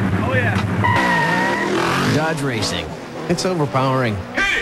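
A car engine revs as the car speeds away.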